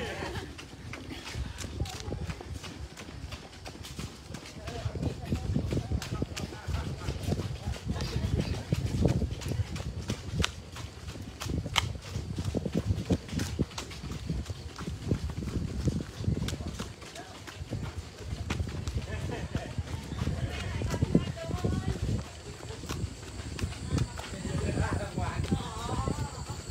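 Many footsteps patter on pavement as a group jogs close by.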